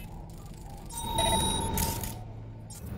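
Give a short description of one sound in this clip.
Electronic interface tones chirp and beep briefly.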